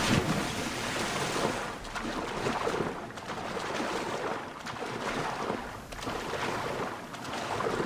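Water swirls and splashes around a swimmer.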